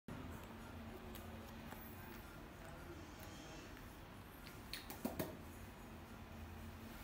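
A young monkey chews apple with wet, crunchy bites.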